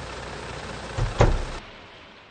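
A door opens and closes.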